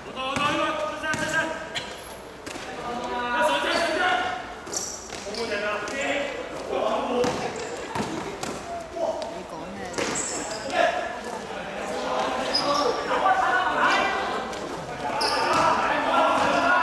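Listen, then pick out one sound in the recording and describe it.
Young people shout and cheer from the sidelines.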